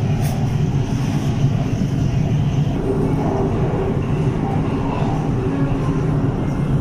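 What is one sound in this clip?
A train rumbles steadily along its track.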